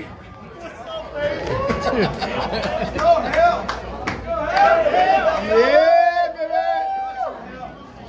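A man shouts with animation nearby.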